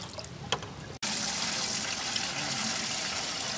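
Waves wash on a nearby shore.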